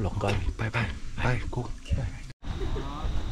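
A young man speaks with animation close by.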